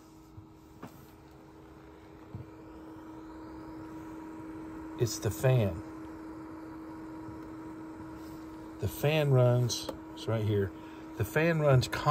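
A computer fan hums steadily.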